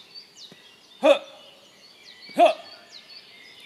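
A man calls out briefly from a short distance.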